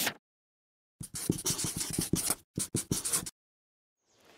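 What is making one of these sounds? A marker pen squeaks across paper in short strokes.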